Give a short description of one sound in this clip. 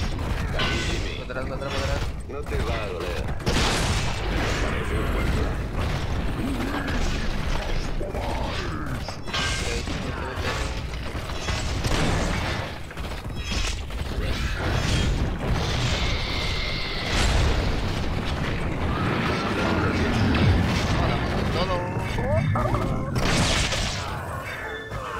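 Spells and blasts crackle and boom in a busy battle.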